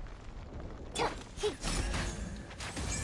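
A weapon strikes with a sharp impact.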